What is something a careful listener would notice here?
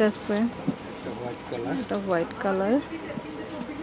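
Leather bags rustle and bump as they are handled.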